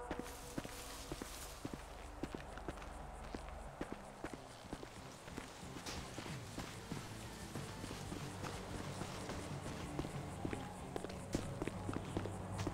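Footsteps crunch on dry ground and gravel.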